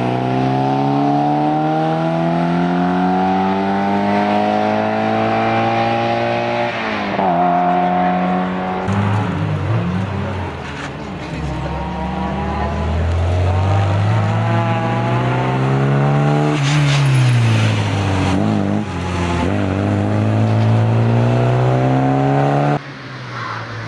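A four-cylinder rally car engine revs hard through the gears and races past.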